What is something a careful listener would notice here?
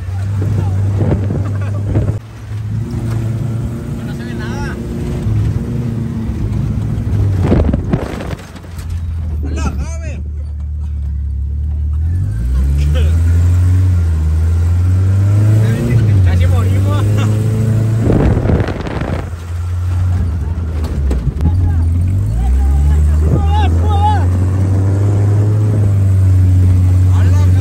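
An engine roars and revs as a vehicle drives over rough ground.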